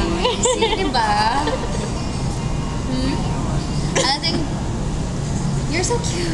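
Another young woman laughs close by.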